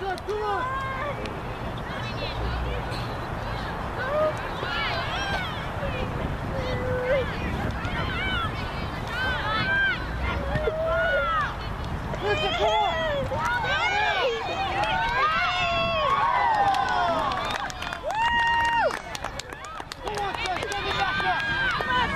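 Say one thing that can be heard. Young girls shout and call out across an open field.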